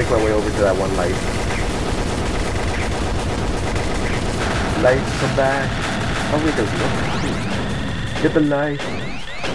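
A powerful laser beam roars steadily.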